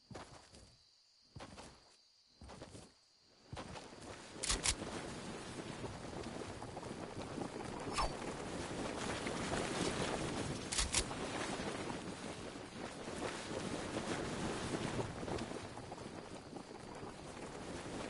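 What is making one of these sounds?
Footsteps run over grass and wooden floors.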